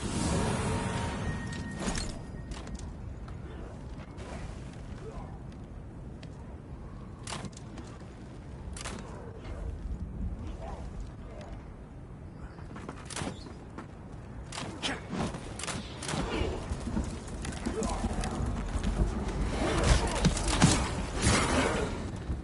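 Heavy footsteps thud over rough ground.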